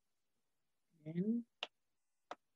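A young man speaks briefly over an online call.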